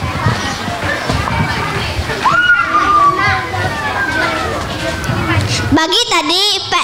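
A crowd of children and adults chatters in the background.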